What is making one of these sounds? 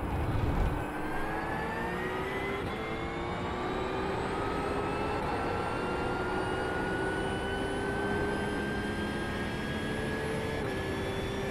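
A racing car engine roars at high revs, climbing in pitch and dropping briefly at each gear change.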